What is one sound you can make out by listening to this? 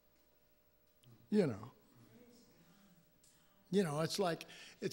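An older man speaks into a microphone in short, emphatic bursts, heard through a loudspeaker.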